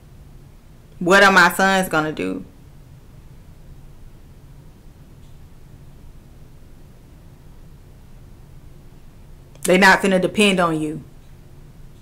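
A woman speaks briefly and loudly into a close microphone.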